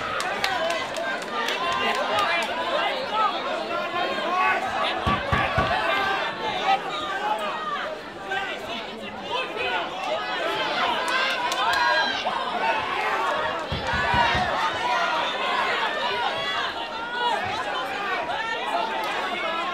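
A crowd of spectators shouts and cheers loudly throughout.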